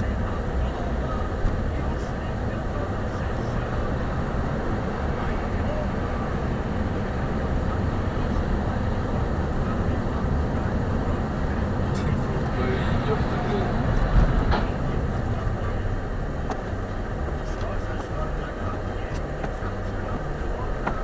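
A car engine hums steadily.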